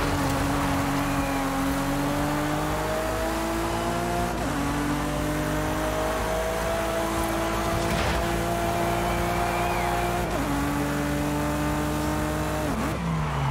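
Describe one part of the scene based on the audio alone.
A sports car engine roars at high revs, rising in pitch and dropping briefly with each gear change.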